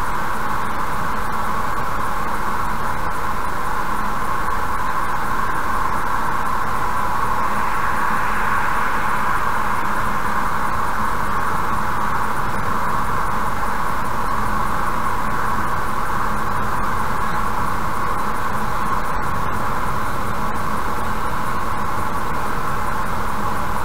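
Car tyres roar steadily on a highway, heard from inside the moving car.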